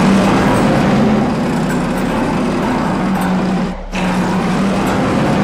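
A heavy armored car engine roars steadily.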